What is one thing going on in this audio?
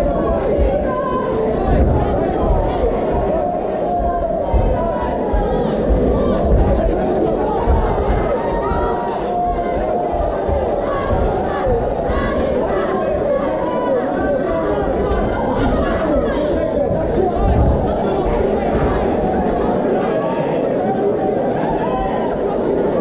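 A large indoor crowd cheers and shouts loudly.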